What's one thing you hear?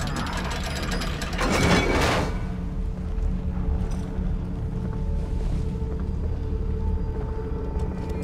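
A heavy crank grinds as it turns a metal gear.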